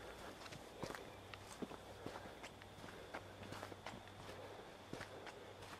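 Footsteps crunch on a path.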